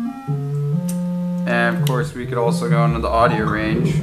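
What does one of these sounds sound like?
A synthesizer plays a sequence of buzzy electronic notes.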